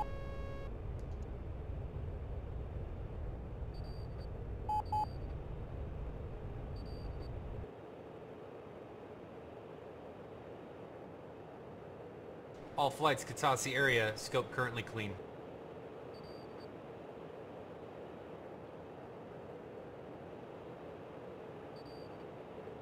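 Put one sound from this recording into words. A jet engine roars steadily, then drops to a quieter hum.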